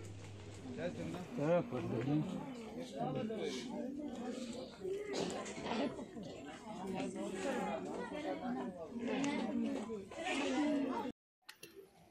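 A crowd of men and women talks and murmurs outdoors.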